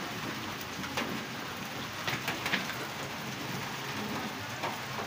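Metal parts clink softly as an engine crankshaft turns.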